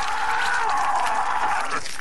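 A young man shouts in alarm.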